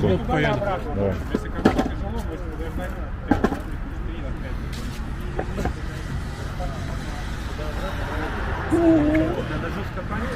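Young men talk and laugh nearby, outdoors.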